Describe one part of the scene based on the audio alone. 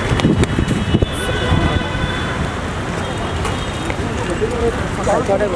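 Traffic hums steadily outdoors in the distance.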